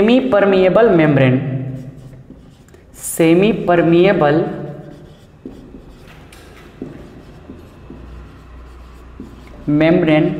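A man speaks clearly and steadily, close to a microphone.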